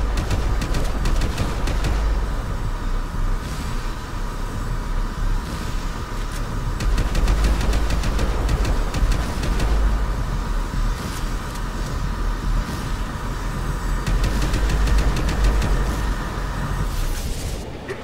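Rapid gunfire bursts loudly and echoes.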